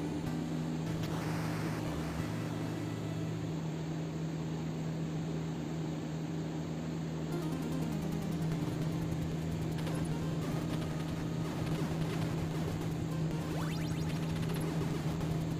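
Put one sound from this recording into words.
A small handheld game console plays electronic beeps and tunes.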